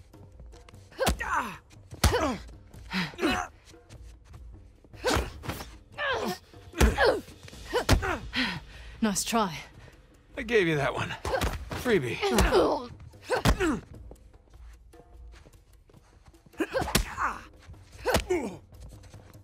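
A woman grunts and cries out as she fights.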